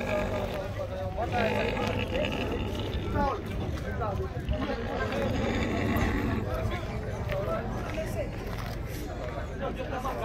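A crowd of people chatter outdoors in the distance.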